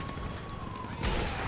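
A rocket launcher fires with a sharp whoosh.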